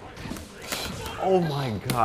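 Flames burst with a loud whoosh.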